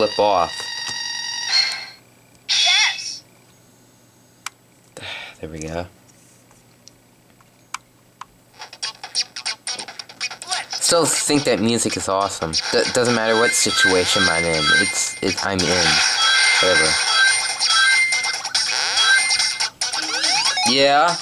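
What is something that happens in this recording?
Electronic game sound effects chime and beep through a small speaker.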